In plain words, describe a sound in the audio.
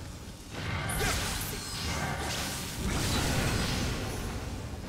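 A sword slashes and strikes with loud impacts.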